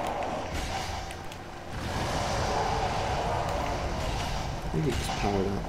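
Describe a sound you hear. Flames roar and burst with a whoosh.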